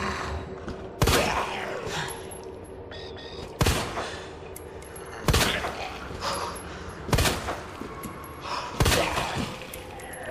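A handgun fires single shots, each with a short echo.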